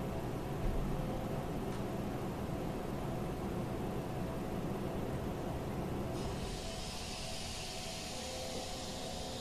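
Level crossing bells ring steadily.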